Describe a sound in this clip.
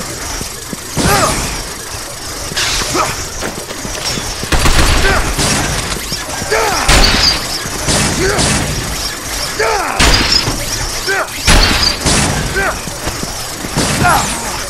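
Gunshots fire in short bursts with a ringing echo.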